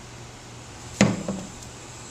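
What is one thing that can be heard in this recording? A plastic funnel knocks onto a metal container.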